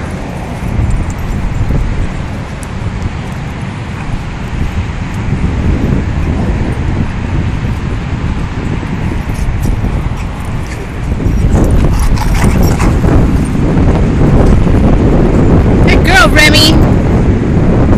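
Dogs scuffle and pant as they play on dirt ground.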